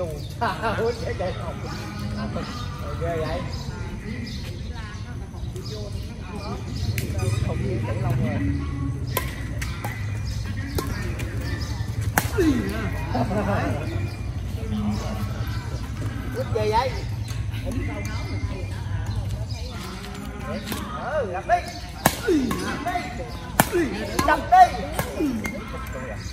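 Adult men and women call out and chat nearby outdoors.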